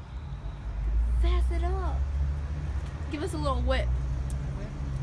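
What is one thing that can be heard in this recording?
A teenage girl speaks brightly close by.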